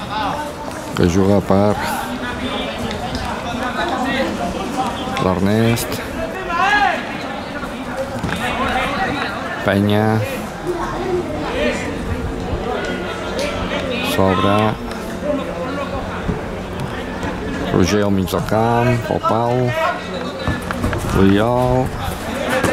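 Young men shout loudly to each other across an open field.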